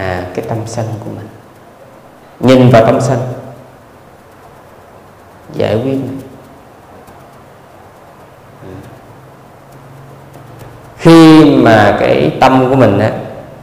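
A man speaks calmly and slowly into a microphone, with pauses.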